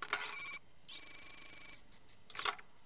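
A short buzzer sounds.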